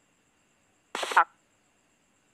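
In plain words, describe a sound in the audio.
A short game alert chirps.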